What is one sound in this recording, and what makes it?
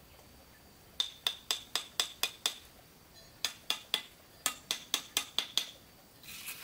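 A trowel taps sharply on bricks, again and again.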